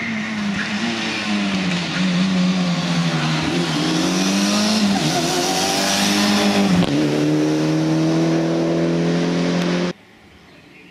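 A rally car engine roars loudly and revs up and down as it shifts gears.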